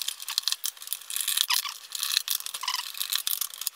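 Hands scrape and tap against a hard plastic case.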